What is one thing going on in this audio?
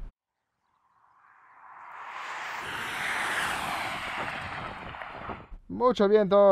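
A car drives past on tarmac with a rising whoosh.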